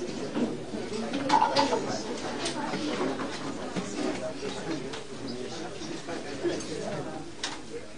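Several men talk and call out at once nearby.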